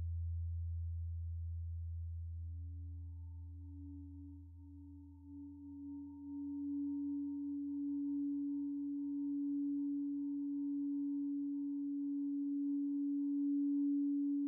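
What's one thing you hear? A steady, higher synthesizer tone swells in and holds.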